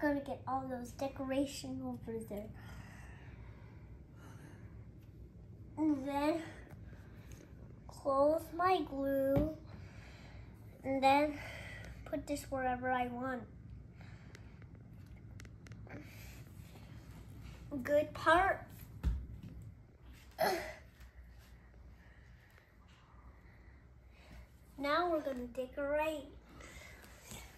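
A young child talks nearby in a high voice, with animation.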